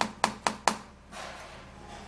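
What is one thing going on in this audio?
A knife taps against a plastic cutting board.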